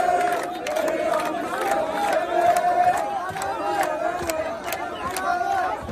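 A large crowd outdoors chants and shouts loudly.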